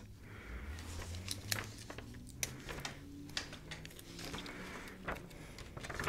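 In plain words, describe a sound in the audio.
Paper rustles in a young woman's hands.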